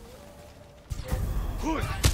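Swords clash in a sudden fight.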